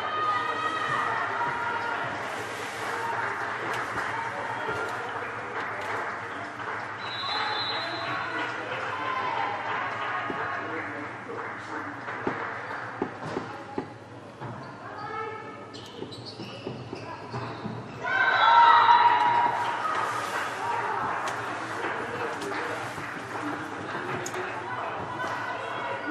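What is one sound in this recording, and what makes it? Young women players shout and cheer loudly.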